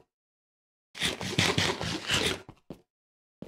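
A game character munches food with quick crunching bites.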